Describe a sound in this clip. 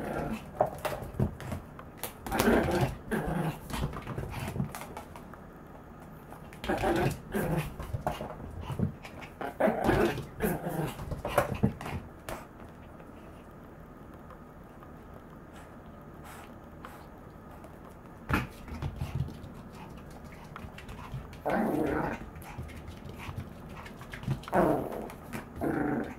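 A small dog's claws click and patter on a hard floor.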